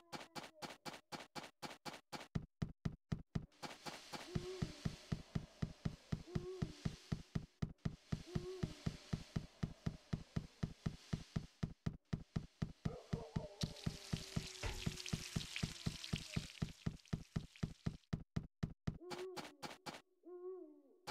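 Quick footsteps run on hard ground.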